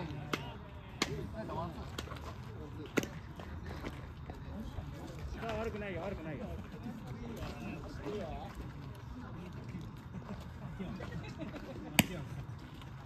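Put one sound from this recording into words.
A ball smacks sharply into a catcher's mitt.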